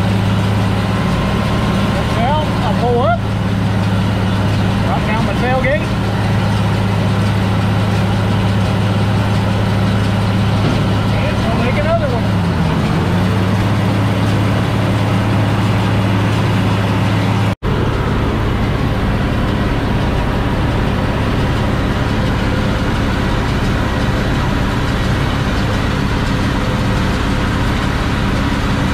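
A hay baler clatters and rattles as it picks up hay.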